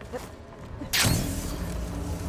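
A heavy thud lands after a drop.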